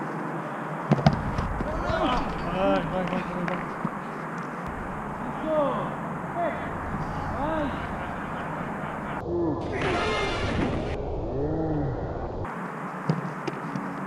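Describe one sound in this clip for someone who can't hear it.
A football thuds off a foot.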